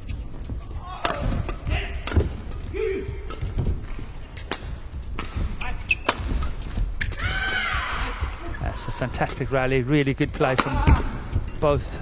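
Rackets sharply smack a shuttlecock back and forth in a fast rally.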